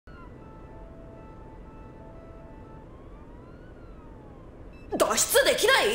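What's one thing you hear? Electronic consoles beep softly.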